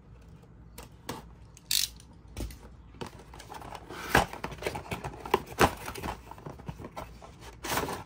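A cardboard box rustles and creaks as it is opened.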